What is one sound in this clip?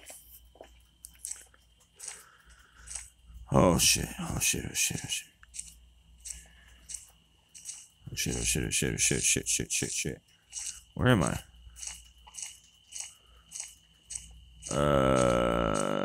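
Footsteps tread steadily along a dirt path.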